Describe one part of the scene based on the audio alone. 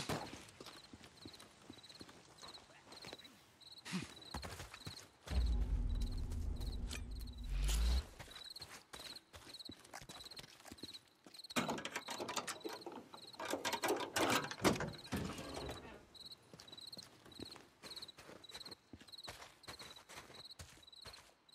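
Footsteps crunch through grass and snow.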